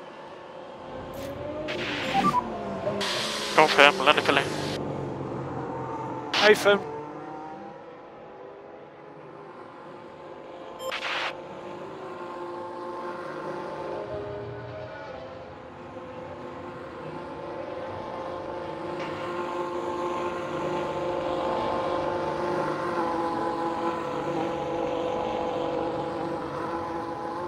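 A racing car engine drones steadily, rising and falling in pitch.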